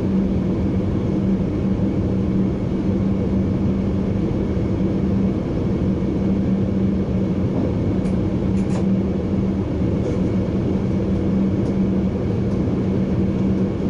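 A train rumbles steadily along the rails with a low, droning hum.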